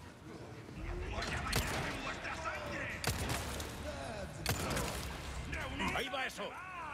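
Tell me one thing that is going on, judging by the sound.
Gunshots ring out, echoing through a large hall.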